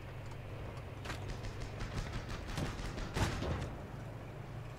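Gunfire cracks in quick bursts.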